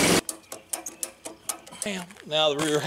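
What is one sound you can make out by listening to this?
A ratchet strap clicks as it is cranked tight.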